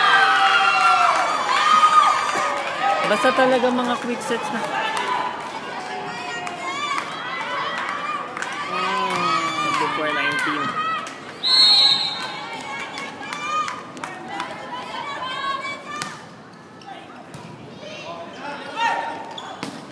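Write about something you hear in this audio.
A crowd of spectators cheers and chatters in a large echoing hall.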